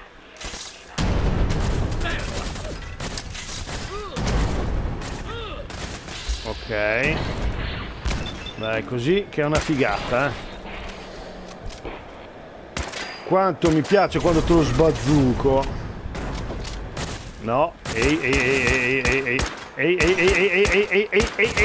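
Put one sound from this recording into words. Rifle shots fire in bursts, loud and sharp.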